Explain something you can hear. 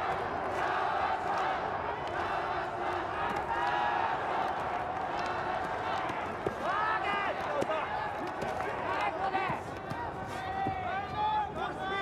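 Punches thud against a boxer's body and gloves.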